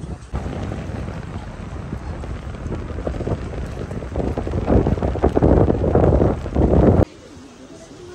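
Wind blows hard over open water.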